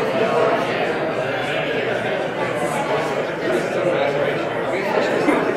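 A man speaks to an audience in an echoing room.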